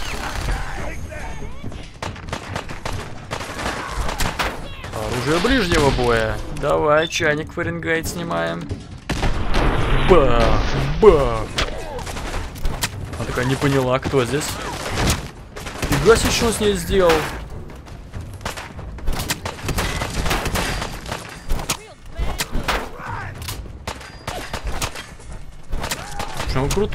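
Gunshots crack repeatedly.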